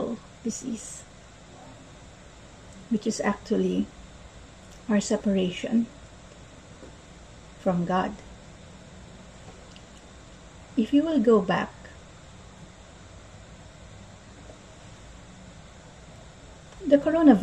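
A young woman speaks calmly and closely into a microphone, in short phrases with pauses.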